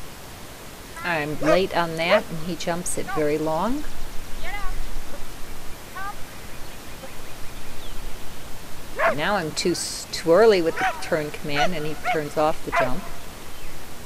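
A woman calls out excitedly to a dog in the open air.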